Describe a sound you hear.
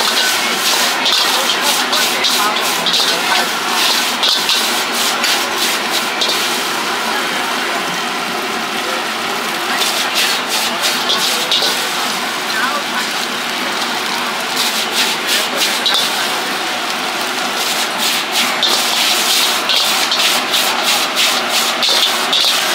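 A metal ladle scrapes and clinks rapidly against a wok.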